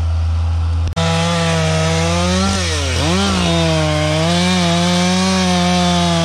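A chainsaw whines loudly close by, its pitch rising and falling as it cuts.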